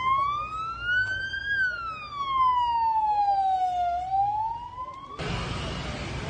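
An ambulance siren wails up and down close by.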